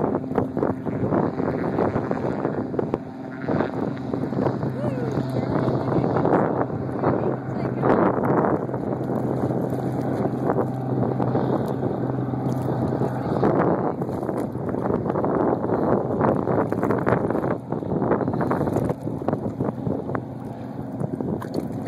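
Small waves lap and splash nearby.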